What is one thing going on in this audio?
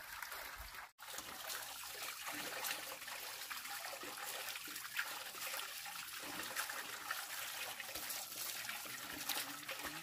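A woman splashes water onto her face.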